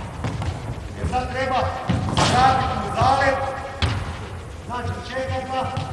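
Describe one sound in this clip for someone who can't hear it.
A man speaks calmly nearby in an echoing hall.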